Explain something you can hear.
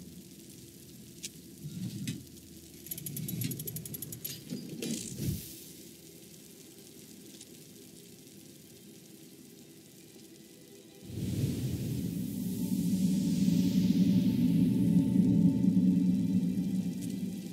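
Flames crackle softly nearby.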